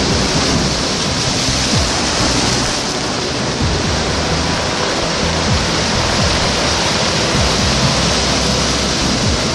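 Waves crash and wash over rocks close by.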